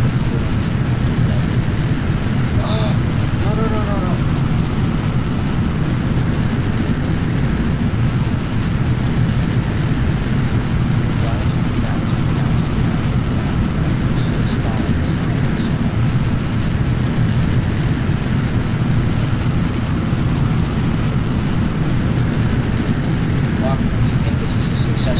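Rocket engines roar steadily with a deep rumble.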